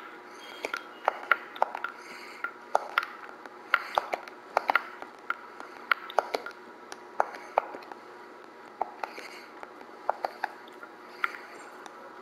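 Short soft clicks tick again and again as a game menu cursor moves between items.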